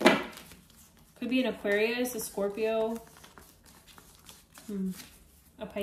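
Playing cards riffle and slide against each other as they are shuffled by hand.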